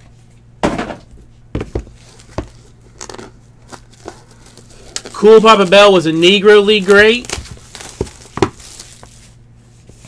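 Plastic wrapping crinkles and tears under fingers.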